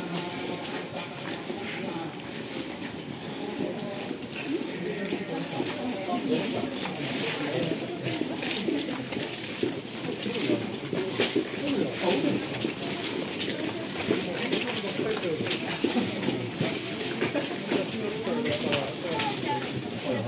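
Footsteps shuffle on wet paving stones.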